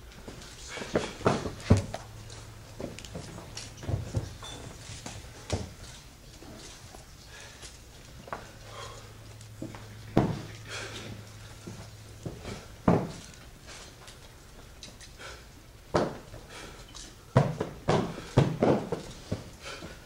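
Men shout sharply in short bursts.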